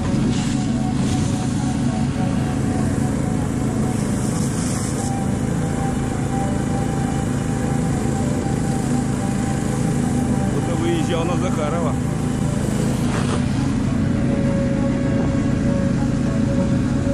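A snowmobile engine drones steadily close by.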